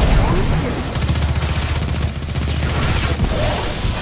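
A heavy gun fires with a deep hum.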